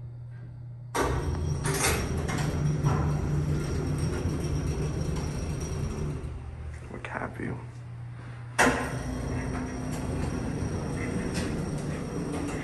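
A lift motor hums and rumbles steadily.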